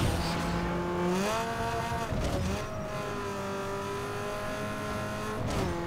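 A racing car engine roars at high speed, its pitch rising and falling as it shifts gears.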